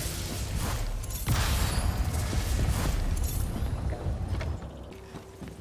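A magic blast roars and crackles in bursts.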